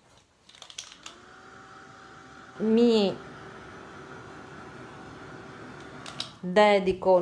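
A hair dryer hums and blows air steadily.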